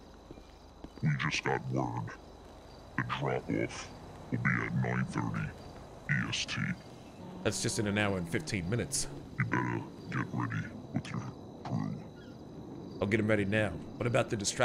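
A man speaks urgently on a phone, heard through a microphone.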